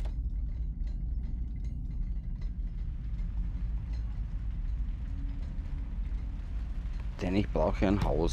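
A fire crackles softly.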